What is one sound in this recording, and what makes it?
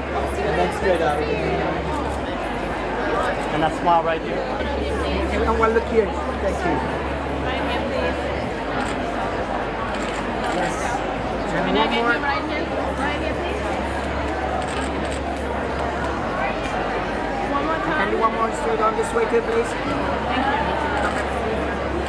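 A young woman speaks calmly and cheerfully into a nearby microphone.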